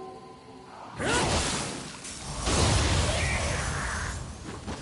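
A sword slashes and strikes loudly in a fight.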